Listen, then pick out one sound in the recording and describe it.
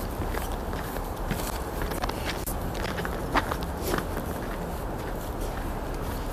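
Footsteps crunch through snow close by.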